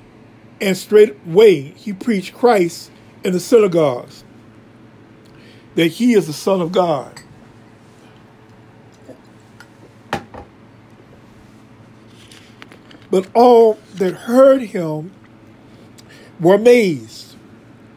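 A man speaks slowly and calmly close to a microphone, with long pauses.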